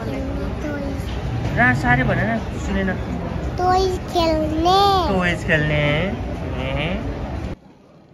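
A young boy giggles.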